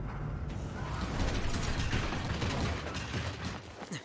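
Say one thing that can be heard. A large metal machine stomps with heavy clanks.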